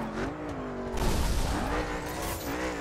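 Tyres screech as a car skids around a corner.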